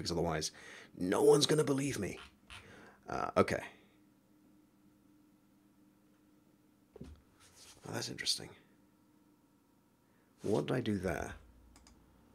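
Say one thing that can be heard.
A man talks calmly into a close microphone, in short bursts.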